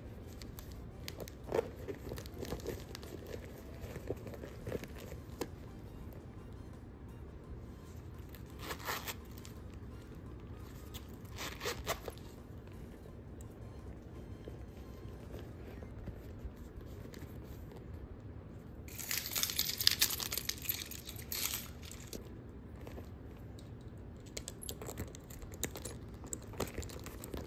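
Hands rummage through a small leather handbag.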